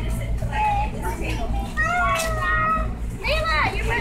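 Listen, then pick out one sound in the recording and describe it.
A woman speaks to a group of young children.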